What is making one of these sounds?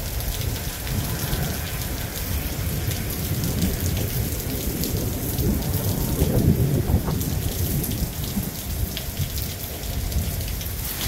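Leaves rustle in the wind.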